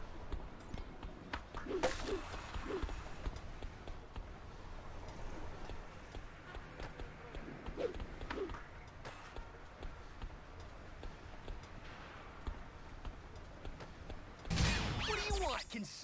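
Skateboard wheels roll on pavement.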